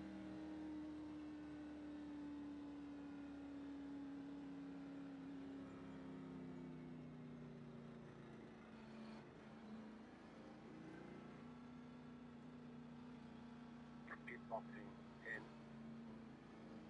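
A race car engine hums steadily at low speed, its pitch slowly dropping as the car slows.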